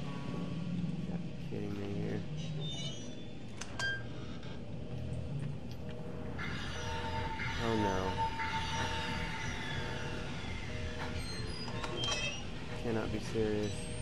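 A door creaks open.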